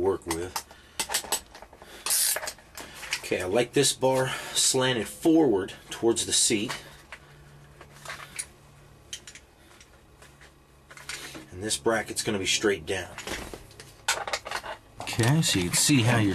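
A hard plastic holster clicks and knocks as hands handle it.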